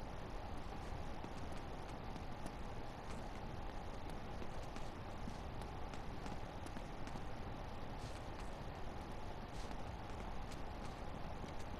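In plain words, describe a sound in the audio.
Footsteps tap steadily across a hard floor.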